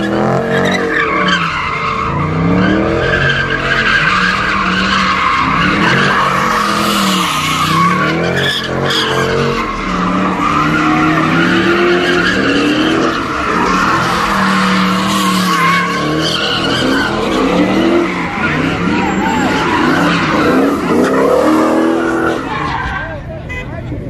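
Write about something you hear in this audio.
Tyres screech and squeal on the pavement.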